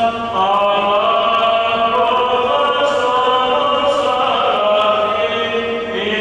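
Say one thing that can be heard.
A choir of men chants together in a slow, sustained unison, echoing in a large hall.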